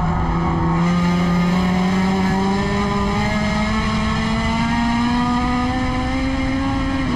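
A race car engine roars loudly from up close, its pitch slowly rising.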